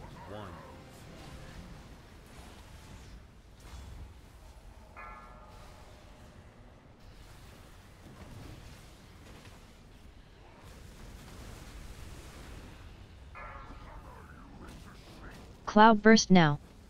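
Magic spells whoosh and crackle in a fiery battle.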